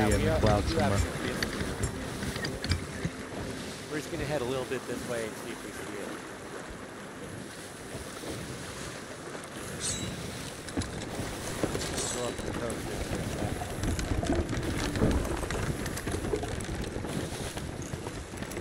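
Wind blows through the rigging.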